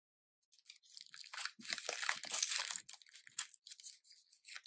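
Plastic wrapping crinkles and tears open.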